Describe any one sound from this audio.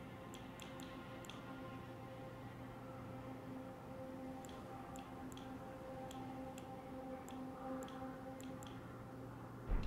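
Menu selection clicks tick sharply and quickly.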